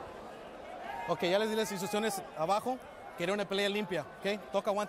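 A man speaks loudly through a microphone, echoing in a large arena.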